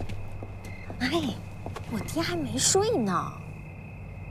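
A woman speaks in a high, emotional voice close by.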